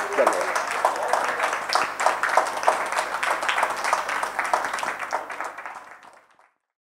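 A crowd claps loudly, then the applause fades away.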